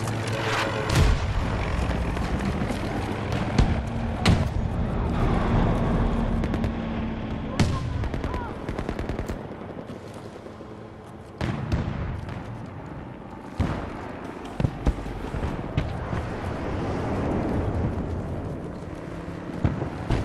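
Gunshots crack sharply in the distance now and then.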